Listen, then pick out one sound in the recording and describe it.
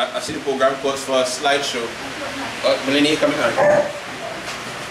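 A man speaks with animation in a large, echoing room.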